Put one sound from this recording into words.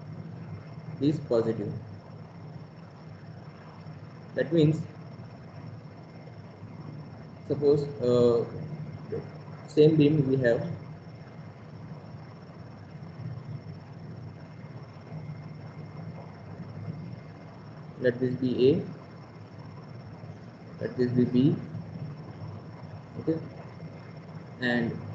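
A man speaks calmly in short phrases through a microphone on an online call.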